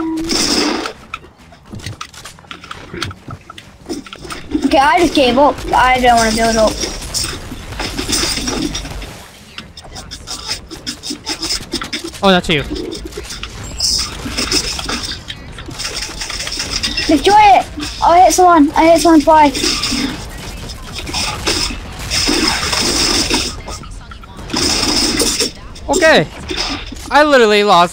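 Game gunfire sounds in rapid bursts.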